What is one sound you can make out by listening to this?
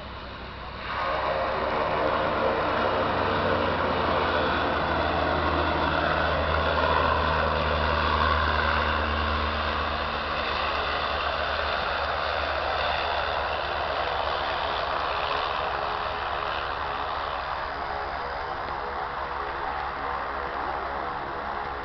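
A small propeller plane's engine drones loudly as it comes in low and lands, then slowly fades.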